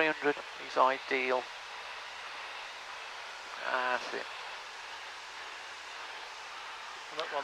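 A man speaks in short bursts through a headset intercom.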